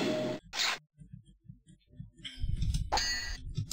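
Swords clash in a video game.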